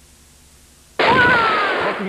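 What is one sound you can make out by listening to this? Flames roar and crackle in a fighting game.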